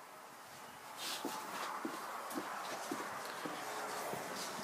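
A door creaks open.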